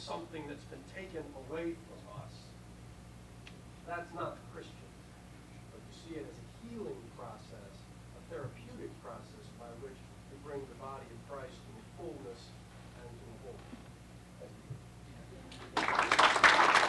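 A man speaks to an audience, pausing between phrases.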